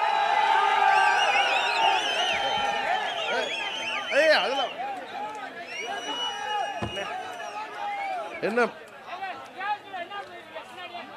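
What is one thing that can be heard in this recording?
A crowd of men cheers and shouts loudly.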